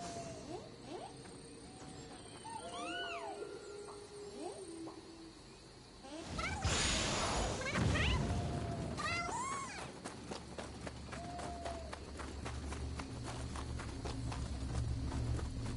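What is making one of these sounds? Footsteps crunch over forest ground.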